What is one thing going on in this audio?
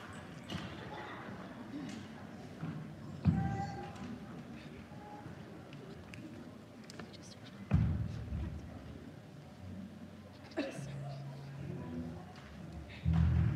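Musicians play a few scattered notes through loudspeakers in a large hall.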